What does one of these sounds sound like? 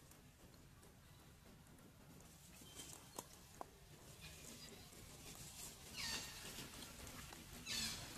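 Leaves rustle as a small monkey climbs through branches.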